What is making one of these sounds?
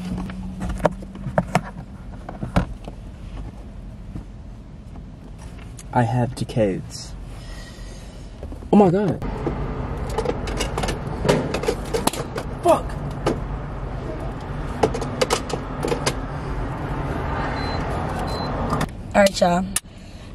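A car engine hums steadily inside a car.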